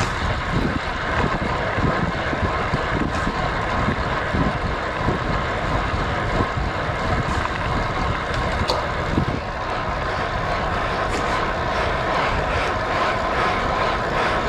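Road bike tyres hum on asphalt.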